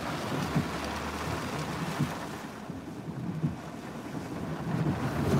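Strong wind roars and buffets the car.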